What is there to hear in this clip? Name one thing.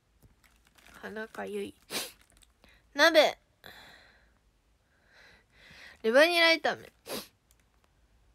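A young woman speaks softly and casually close to a microphone.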